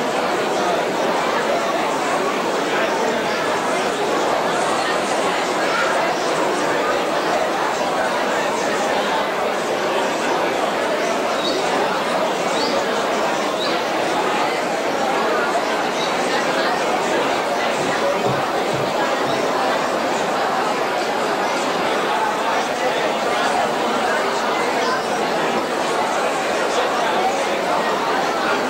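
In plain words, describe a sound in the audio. A large crowd cheers and chatters loudly in a big echoing hall.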